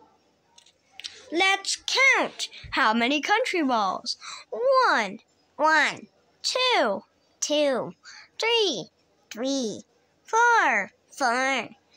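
A young boy talks close by with animation, in short high-pitched bursts.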